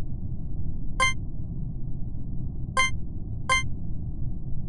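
A short game chime sounds as menu buttons are tapped.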